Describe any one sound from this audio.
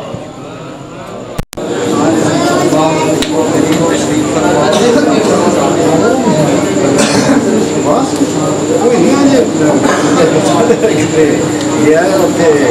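A crowd of men talks and murmurs close by.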